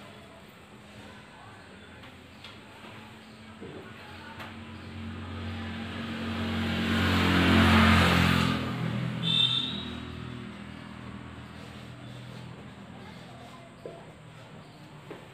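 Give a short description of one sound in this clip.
A marker squeaks and scratches on a whiteboard.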